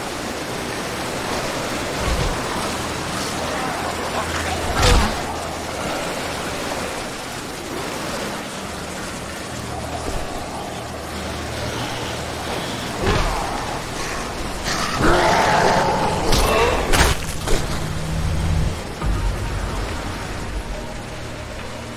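Waves crash and wash steadily against a shore.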